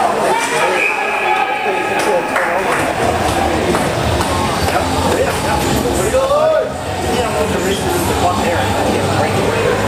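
Young men on the ice call out to one another.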